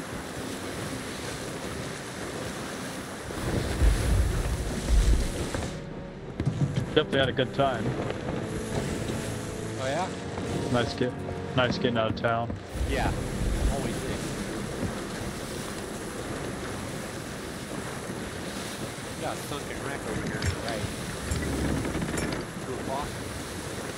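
Stormy waves wash and crash against a wooden ship.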